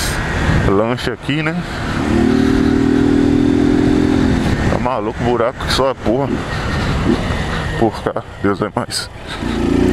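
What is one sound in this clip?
A motorcycle engine revs up and down sharply, close by.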